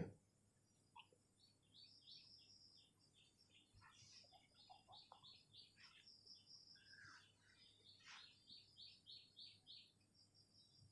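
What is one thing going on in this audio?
A pencil scratches lightly on paper in short strokes.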